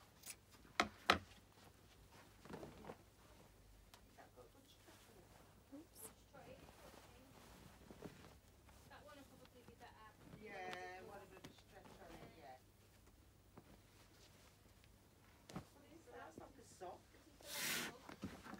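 Cloth rustles and swishes as it is handled and folded.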